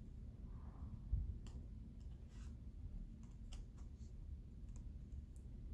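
Cards softly slide and tap on a table.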